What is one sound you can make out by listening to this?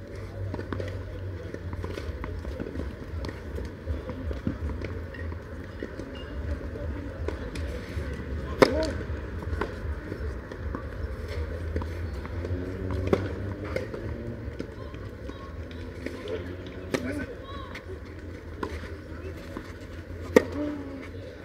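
Tennis rackets strike a ball back and forth outdoors.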